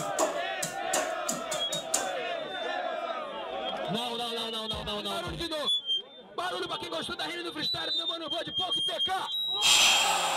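A young man raps loudly into a microphone amid a crowd.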